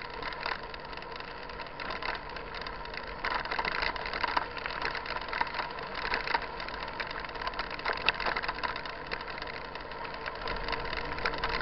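Bicycle tyres roll and crunch over a rough dirt road.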